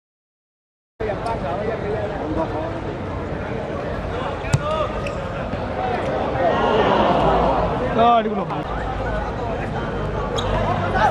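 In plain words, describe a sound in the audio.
Young men shout and call out to each other across an open court.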